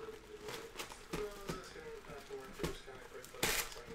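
Plastic wrap crinkles as hands tear it off a box.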